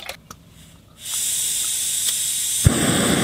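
Gas hisses steadily from a camp stove.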